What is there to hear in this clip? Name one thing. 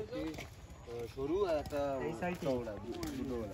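Several young men talk nearby outdoors.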